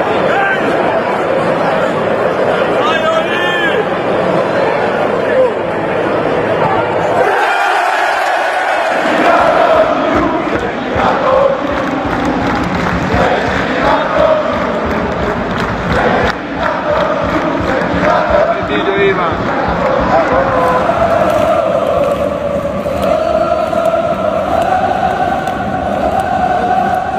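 A large stadium crowd chants and sings loudly together.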